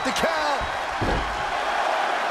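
A body slams onto a wrestling ring mat with a heavy thud.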